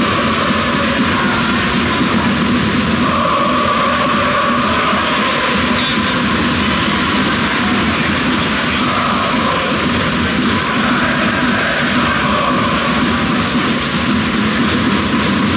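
A large stadium crowd chants and sings loudly in unison.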